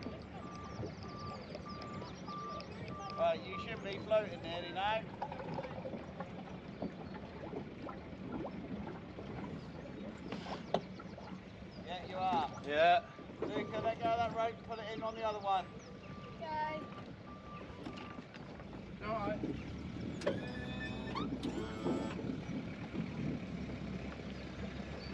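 Water laps gently against a boat's hull.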